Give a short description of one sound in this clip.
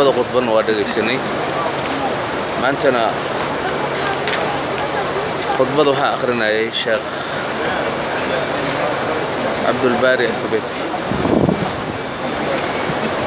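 A large crowd of men murmurs and chatters all around.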